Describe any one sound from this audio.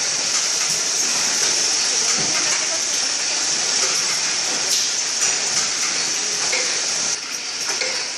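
Boxes knock and rattle along a moving conveyor.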